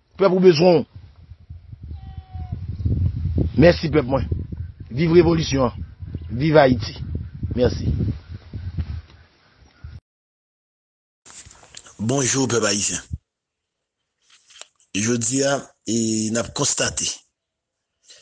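A man speaks with animation, heard through a microphone outdoors.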